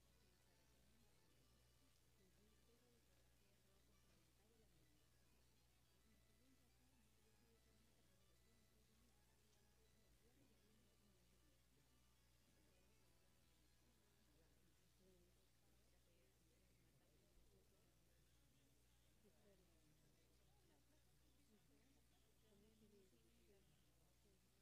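A seated audience murmurs and chatters quietly.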